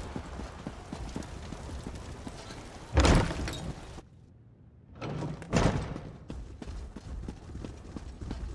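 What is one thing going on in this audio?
Footsteps tap on stone as a figure runs.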